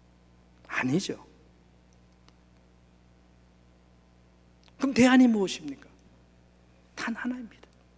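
A middle-aged man speaks slowly and emphatically into a microphone, with pauses between phrases.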